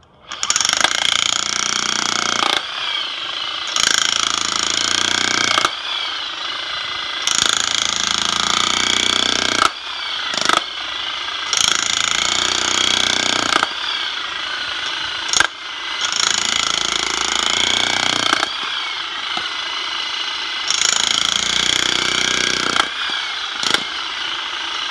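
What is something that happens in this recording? An electric jackhammer hammers loudly in bursts, pausing and starting again.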